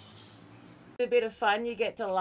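A young woman speaks animatedly and close into a microphone.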